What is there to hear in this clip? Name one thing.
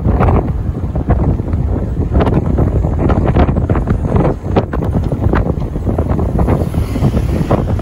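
A vehicle's engine hums steadily as it drives.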